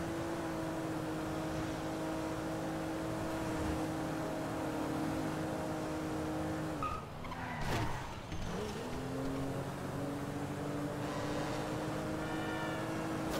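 A car engine hums steadily at speed, dropping in pitch briefly and then rising again.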